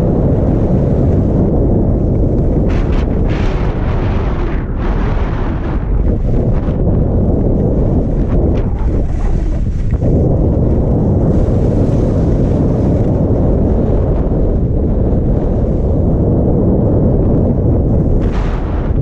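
Wind rushes loudly past, roaring low and steady.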